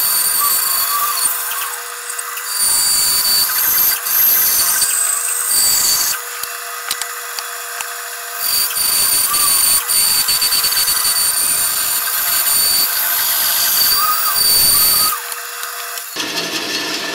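A band saw whines loudly as it cuts through wood.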